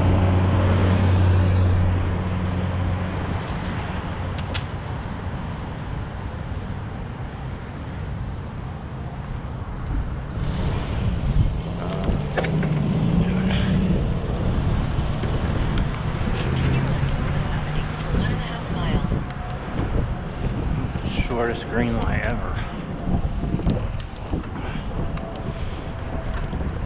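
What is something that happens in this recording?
Wind rushes and buffets past a moving bicycle outdoors.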